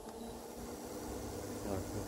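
A button on a control panel is pressed with a soft click.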